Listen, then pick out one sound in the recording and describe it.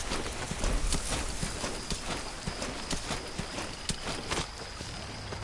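Clothing rustles and scrapes over dirt as someone crawls.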